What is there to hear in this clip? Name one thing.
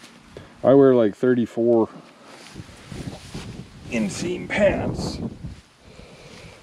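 Tall grass stalks rustle and swish against a walker's legs.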